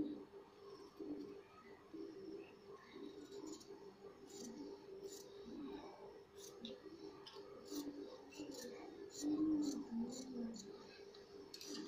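Scissors snip through slippery fabric.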